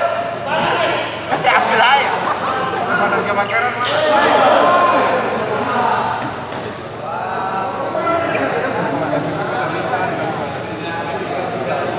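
Men talk and call out in a large echoing hall.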